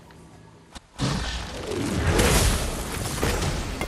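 A blade swishes through the air.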